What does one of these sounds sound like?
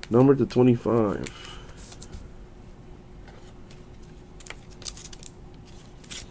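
Cardboard and plastic packaging rustles and clicks under handling.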